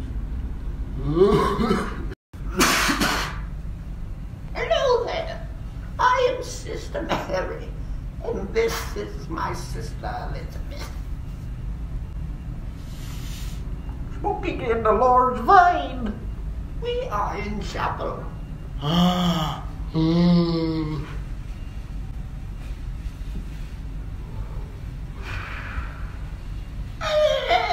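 Young men laugh.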